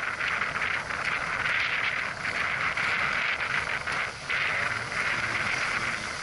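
Water rushes and splashes steadily along the hull of a sailing boat.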